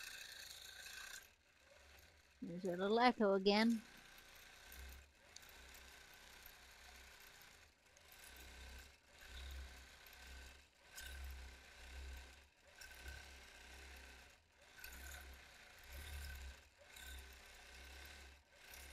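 A quilting machine hums and stitches steadily, its low drone swelling and easing as it moves.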